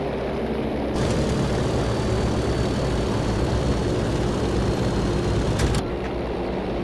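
Inside a cockpit, engine roar grows louder and rattles.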